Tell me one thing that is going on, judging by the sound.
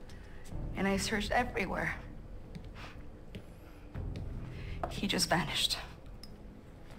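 A young woman speaks quietly and sadly.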